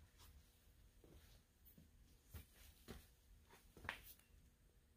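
Footsteps thud on a floor close by.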